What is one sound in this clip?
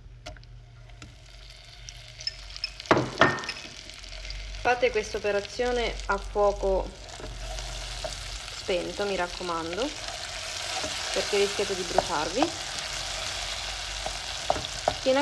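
Butter sizzles and crackles as it melts in a pan.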